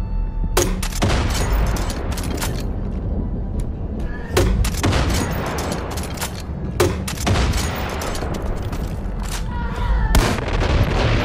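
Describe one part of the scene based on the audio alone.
A gun fires loud, booming shots.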